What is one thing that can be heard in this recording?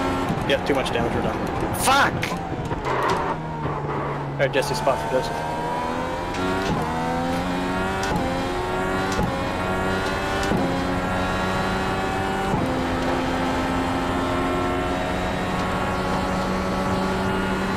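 A racing car engine revs high and climbs through the gears.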